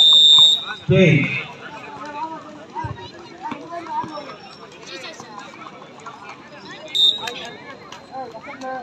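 A large crowd chatters and calls out outdoors.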